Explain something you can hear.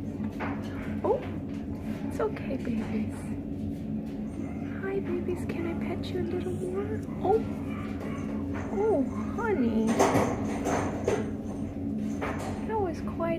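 A cat meows loudly several times.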